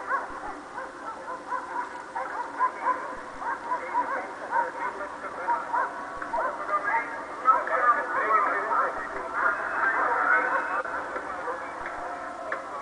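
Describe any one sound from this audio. A large crowd of people chatters and shouts outdoors.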